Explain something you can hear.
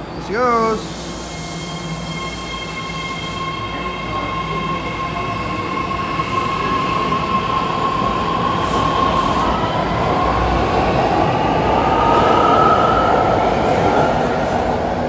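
A train hums and whines, rising in pitch as it pulls away.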